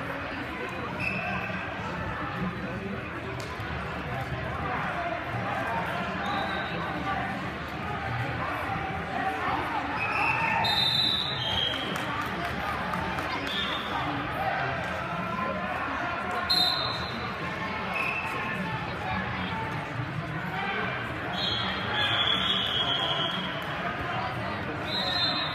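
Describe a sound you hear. Whistles blow in short sharp bursts.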